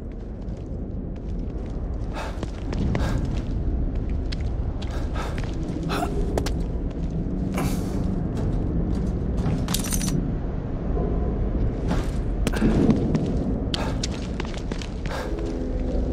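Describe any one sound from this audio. Footsteps run across hard ground outdoors.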